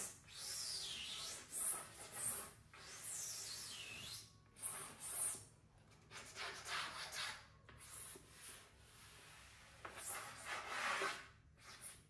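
Hands rub and slide across a smooth wooden surface with soft swishing.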